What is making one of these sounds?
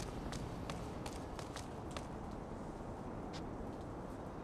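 Footsteps tap lightly on a rooftop.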